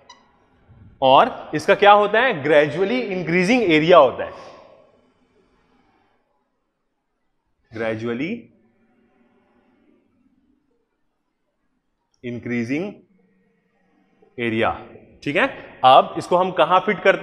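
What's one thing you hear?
A man lectures with animation into a close microphone, in bursts with pauses.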